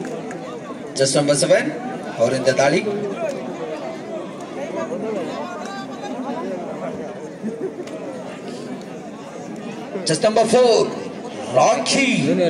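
Spectators cheer loudly in bursts.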